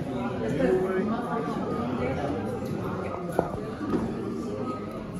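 A crowd of young people chatters and calls out indoors.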